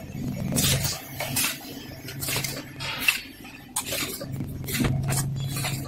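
Bottles rattle along a conveyor.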